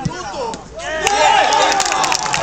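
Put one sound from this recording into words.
A group of people cheers loudly as a goal is scored.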